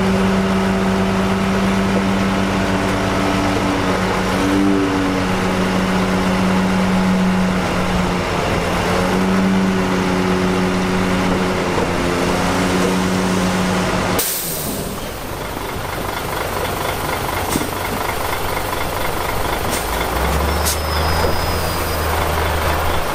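Bulldozer diesel engines rumble and drone steadily close by.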